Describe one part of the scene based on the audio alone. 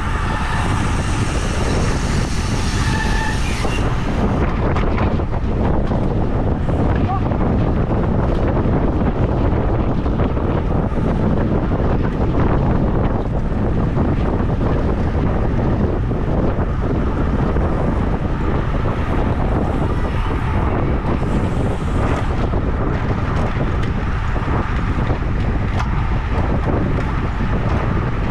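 Bicycle tyres hum on pavement.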